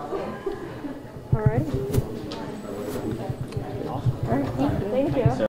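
A middle-aged man speaks calmly, close to a microphone.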